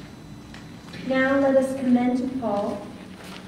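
A woman sings in a clear voice.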